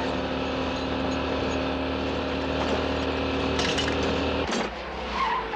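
A small car engine hums steadily.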